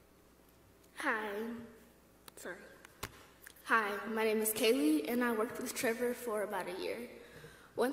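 A woman speaks calmly through a microphone in a large hall.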